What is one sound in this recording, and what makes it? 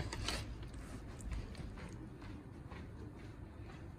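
A metal server scrapes on a pizza pan.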